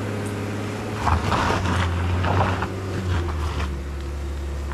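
Tyres crunch over gravel and stones.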